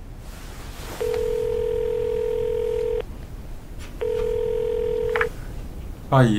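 A phone's ringing tone purrs twice through the earpiece.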